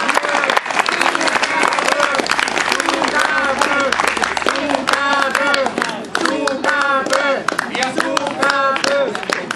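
A young man sings loudly through a microphone.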